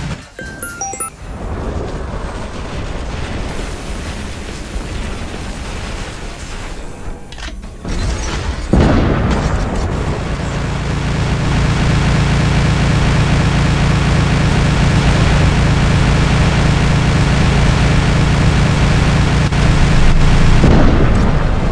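Explosions boom.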